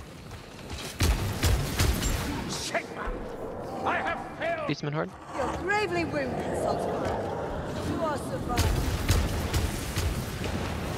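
A heavy gun fires with loud booming blasts.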